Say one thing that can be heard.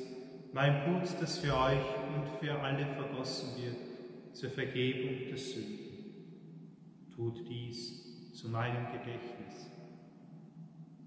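A man chants through a microphone in a large echoing hall.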